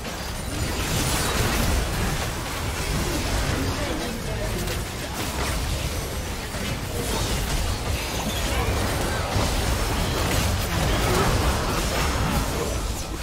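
Spell blasts, clashes and impact effects from a video game battle crackle and boom without pause.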